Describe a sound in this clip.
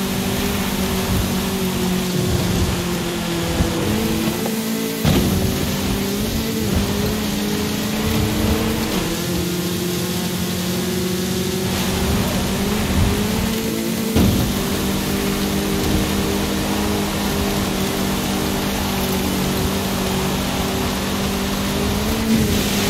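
Tyres crunch and spray over loose dirt.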